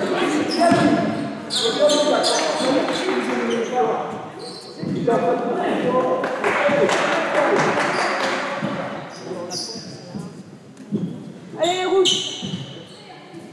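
Sneakers squeak on a hard court.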